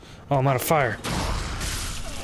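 An axe swings through the air with a whoosh.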